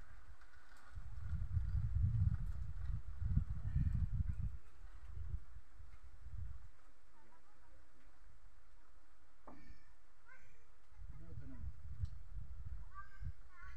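Wind gusts roughly outdoors.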